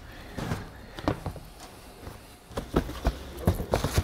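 A shoebox lid is lifted and rustles.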